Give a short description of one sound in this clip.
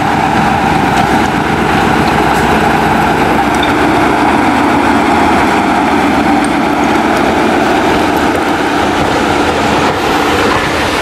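A diesel locomotive engine rumbles steadily as it passes close by.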